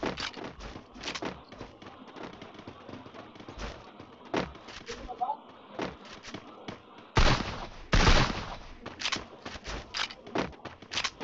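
Footsteps thud quickly on hard ground.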